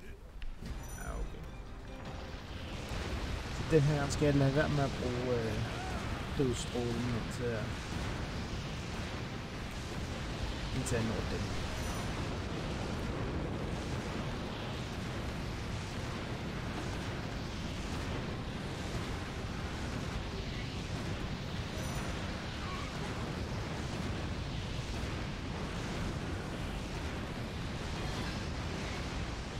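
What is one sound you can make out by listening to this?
Explosions and blasts rumble steadily throughout.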